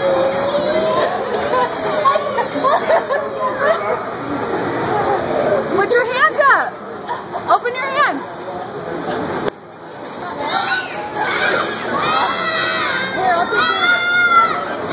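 Young children scream and squeal with excitement.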